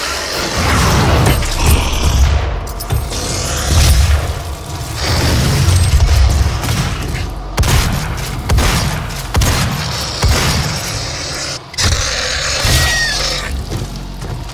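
Video game gunfire rings out in rapid bursts.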